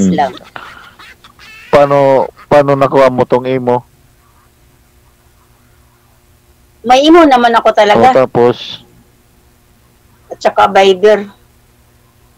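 A middle-aged woman talks casually over an online call.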